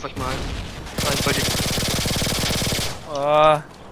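Pistols fire in a rapid burst.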